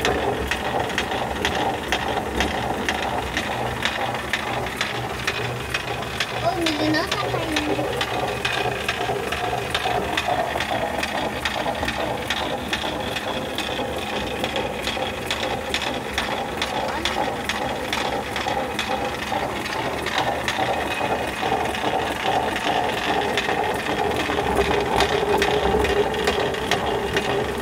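A stone mill grinds with a steady rumble.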